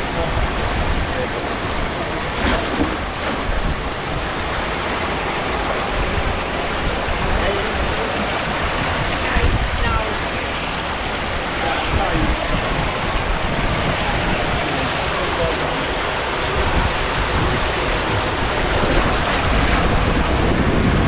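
Wind buffets a nearby microphone outdoors.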